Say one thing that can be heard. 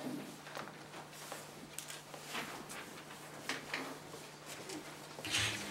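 Footsteps approach across the floor.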